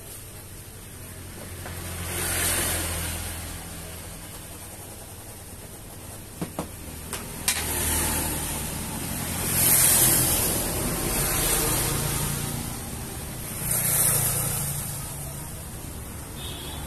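Stiff vinyl rustles and crinkles as it is handled.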